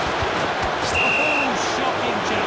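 A referee's whistle blows once sharply.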